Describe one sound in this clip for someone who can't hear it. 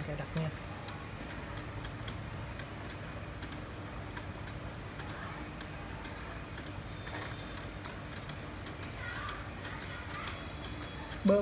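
A finger taps and clicks on a laptop touchpad.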